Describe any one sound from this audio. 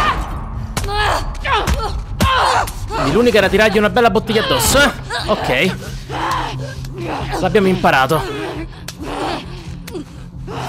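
Two young women grunt and strain as they struggle.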